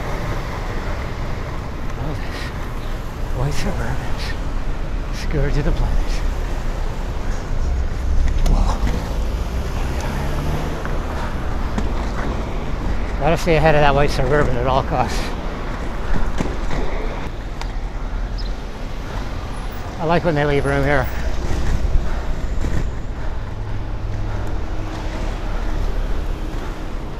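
Inline skate wheels roll and rumble steadily on pavement.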